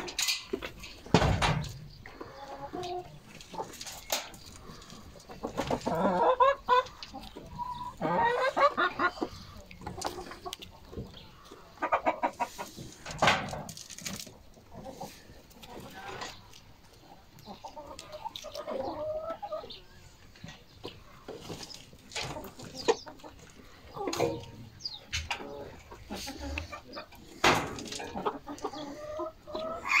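Hens cluck and chatter close by.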